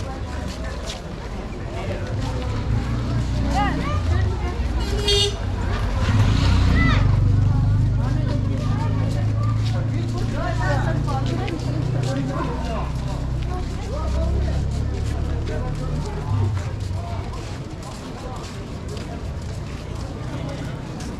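Voices of men and women in a crowd murmur and call out nearby.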